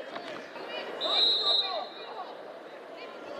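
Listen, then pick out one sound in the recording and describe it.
A referee's whistle blows one long, sharp blast.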